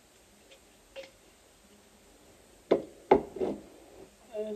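A jar lid clicks and clatters as it is handled.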